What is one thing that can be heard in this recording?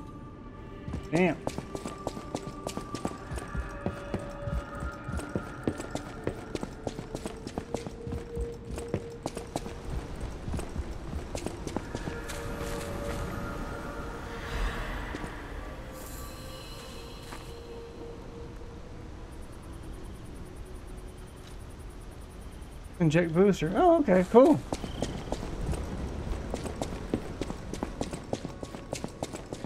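Quick footsteps run across a hard floor.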